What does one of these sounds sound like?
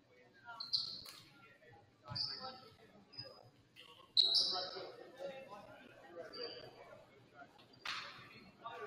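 A volleyball is hit with sharp slaps in a large echoing gym.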